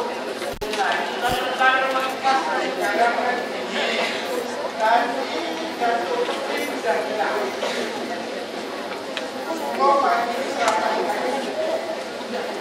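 A man speaks animatedly into a microphone, heard through loudspeakers in a large echoing hall.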